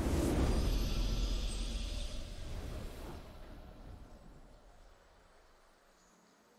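A triumphant game fanfare booms out and slowly fades.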